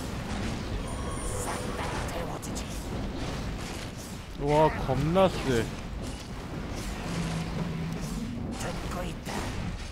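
Metal weapons clash and clang.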